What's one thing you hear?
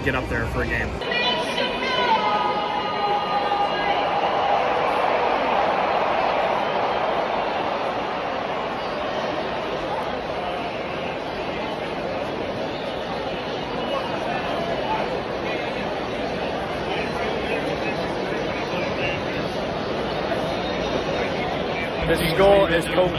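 A large crowd chatters and sings in a huge echoing stadium.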